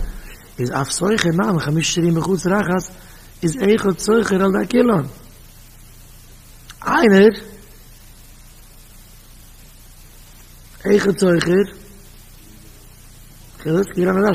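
A man speaks into a microphone in a chanting, expressive tone, with pauses between phrases.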